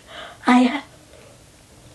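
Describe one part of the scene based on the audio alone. A young woman yawns loudly.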